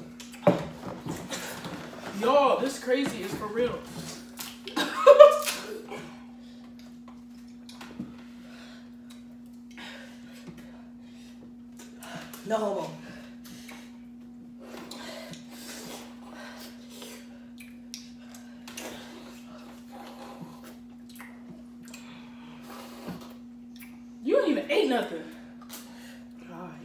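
Food crunches as young people eat.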